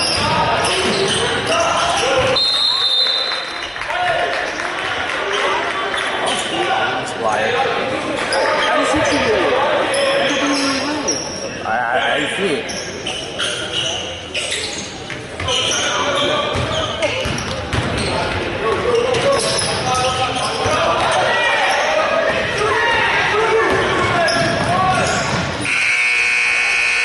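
A crowd of spectators murmurs and chatters nearby.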